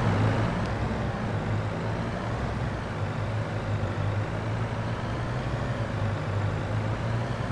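A tractor engine rumbles steadily as it drives.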